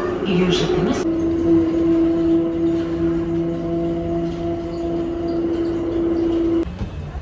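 A train's electric motor whines steadily.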